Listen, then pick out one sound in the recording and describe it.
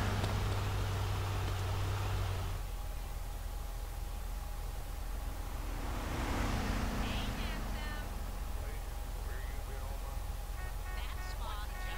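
Footsteps run and then walk on pavement.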